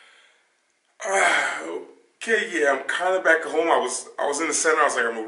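A man speaks with animation close to the microphone.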